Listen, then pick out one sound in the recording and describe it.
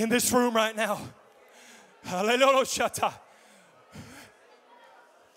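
A man calls out loudly and with animation through a microphone in an echoing hall.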